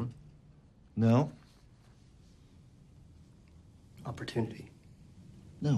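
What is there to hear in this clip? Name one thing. Another man answers nearby with animation.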